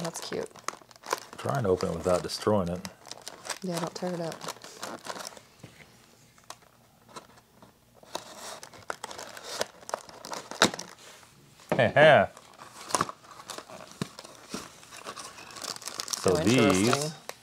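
Paper and cardboard rustle and crinkle as hands fold them.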